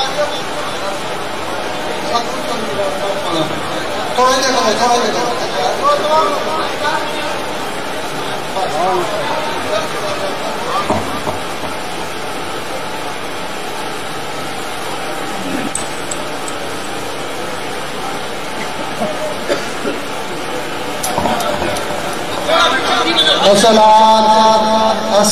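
A large crowd of men murmurs and calls out close by.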